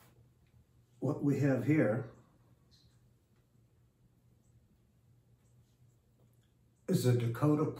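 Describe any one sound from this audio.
An elderly man speaks calmly, close to a microphone.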